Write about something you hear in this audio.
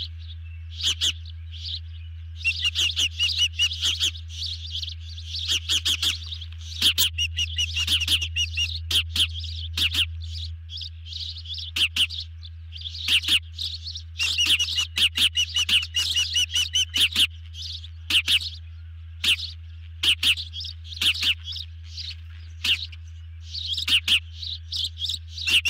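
Ospreys call close by with shrill, rapid chirping whistles, on and off.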